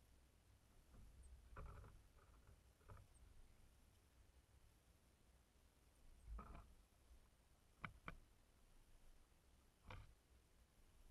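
Small birds peck at seed in a feeder with sharp taps.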